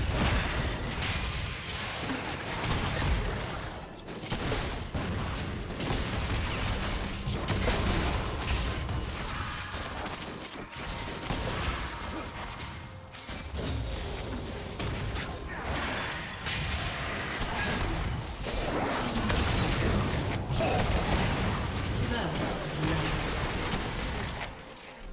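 Game spell effects crackle and boom in a fight.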